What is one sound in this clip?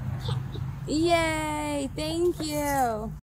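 A young child squeals happily close by.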